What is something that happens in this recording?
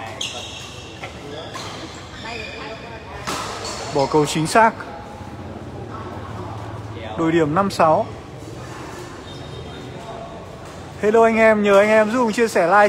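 A shuttlecock is struck sharply by rackets.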